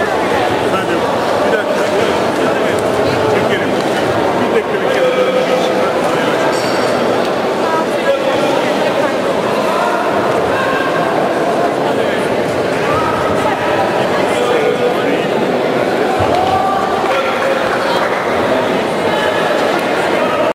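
A crowd of people chatter loudly throughout a large echoing hall.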